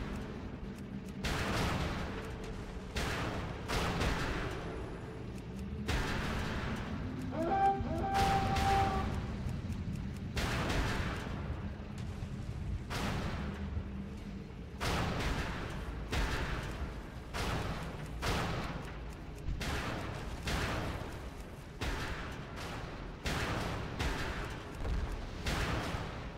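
Cannon fire booms again and again in a game battle.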